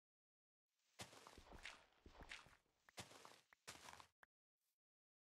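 Dirt crunches as it is dug out in quick blows.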